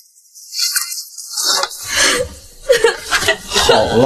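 A young woman sobs softly.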